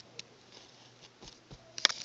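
Cloth rustles and brushes under a hand close by.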